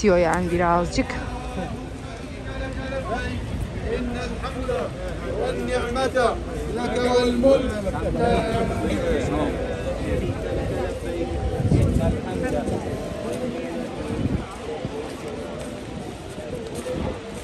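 A crowd of men and women chants and murmurs together.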